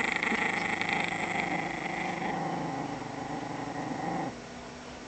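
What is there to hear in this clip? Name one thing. A small dog growls steadily up close.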